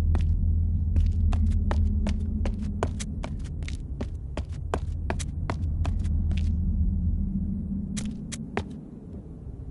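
Footsteps tap quickly on a hard stone floor.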